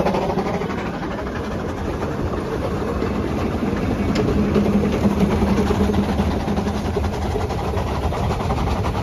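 Train wheels rumble and clack over rail joints.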